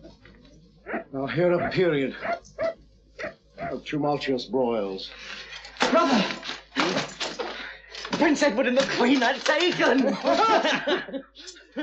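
A man declaims loudly and forcefully, close by.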